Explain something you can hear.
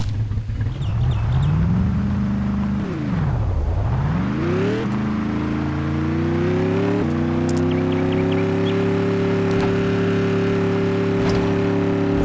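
A simulated off-road truck engine revs up, dips and climbs again in pitch.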